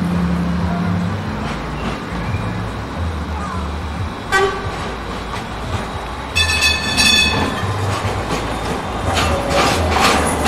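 A tram rumbles slowly past close by.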